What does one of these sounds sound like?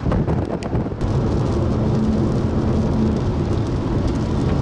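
A car engine hums with steady road noise from inside the car.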